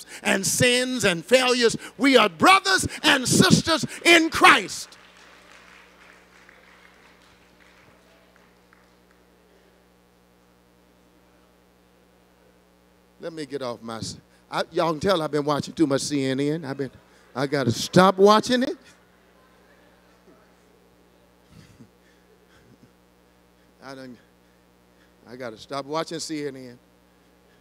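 A man preaches with animation through a microphone in a large echoing hall, pausing between bursts of speech.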